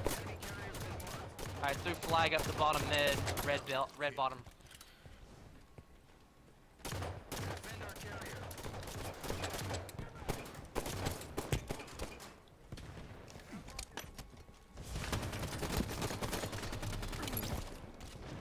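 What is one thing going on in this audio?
Gunfire rattles from a game.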